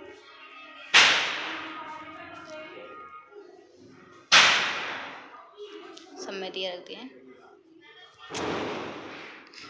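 Firecrackers burst with loud, sharp bangs that echo off nearby walls.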